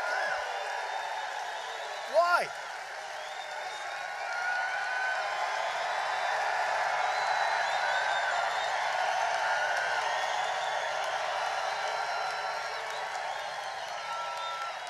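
A large crowd cheers and shouts loudly in a big echoing arena.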